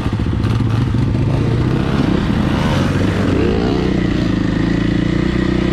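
A dirt bike engine revs and hums up close, rising and falling in pitch.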